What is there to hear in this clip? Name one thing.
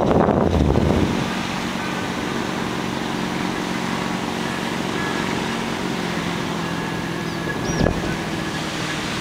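Wind rushes and buffets steadily high in the open air.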